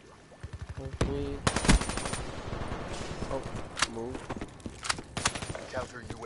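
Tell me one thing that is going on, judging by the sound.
Rifle shots ring out in sharp single cracks.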